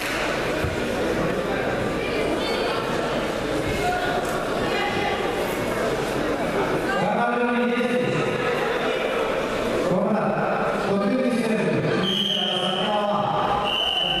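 A crowd chatters and calls out throughout a large echoing hall.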